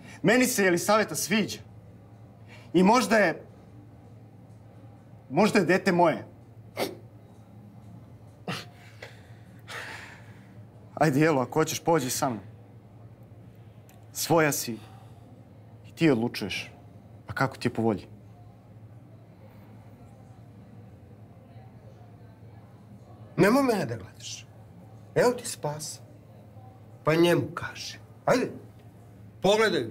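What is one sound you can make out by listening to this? A younger man speaks tensely, close by.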